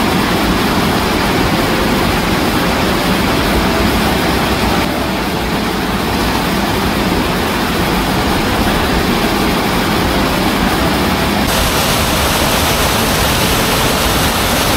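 Water roars steadily as it pours over a waterfall and churns below.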